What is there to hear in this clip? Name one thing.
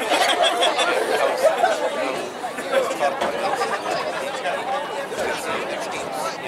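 A crowd of spectators chatters nearby outdoors.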